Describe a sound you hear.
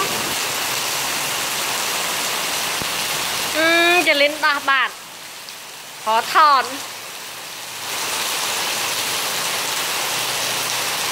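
Rain falls steadily outdoors, pattering on hard ground.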